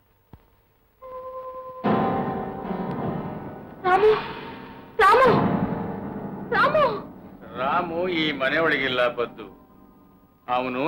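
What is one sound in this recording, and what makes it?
A woman sings with feeling.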